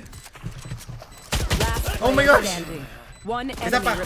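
A pistol fires several quick shots.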